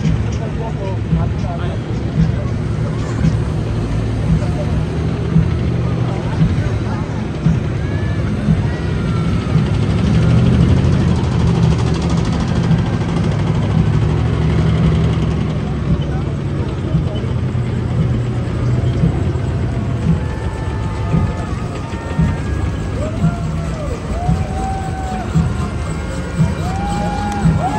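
Heavy military vehicles rumble past with deep engine noise.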